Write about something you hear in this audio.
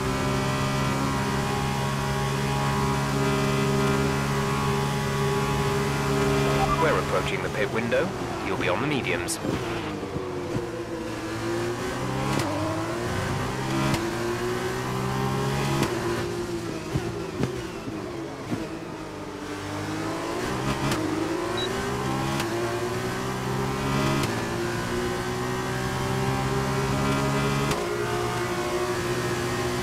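A racing car engine screams at high revs, shifting gears up and down.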